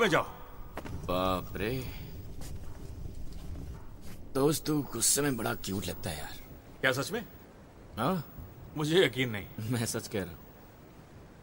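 A second man laughs and talks with animation.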